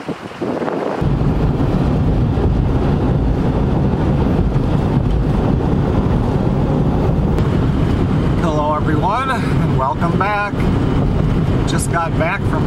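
Tyres roar steadily on a road from inside a moving car.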